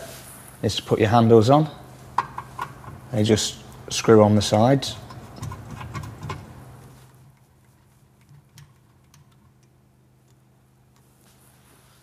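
A metal rod slides and knocks into a metal frame.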